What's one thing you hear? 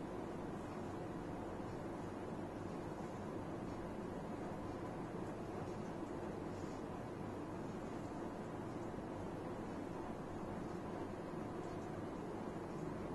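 A woman speaks calmly into a microphone close by.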